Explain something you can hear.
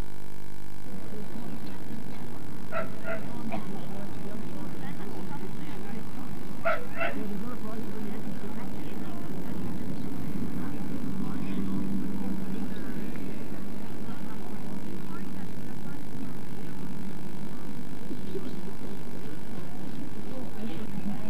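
A crowd murmurs softly in the distance outdoors.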